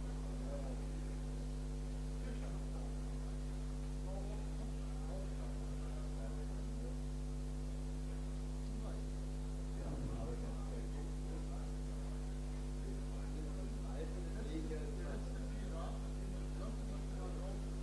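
A man speaks over loudspeakers in a large echoing hall.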